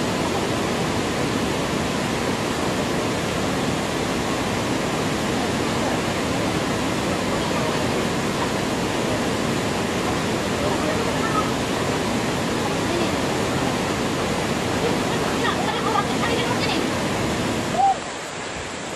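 A waterfall rushes steadily into a pool.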